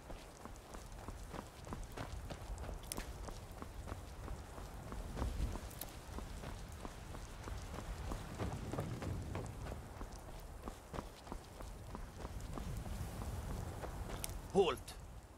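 Footsteps crunch on stone and gravel at a steady walking pace.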